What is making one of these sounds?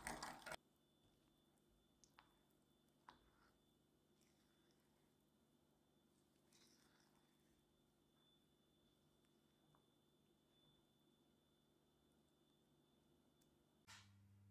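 A spatula scrapes and taps against a bowl.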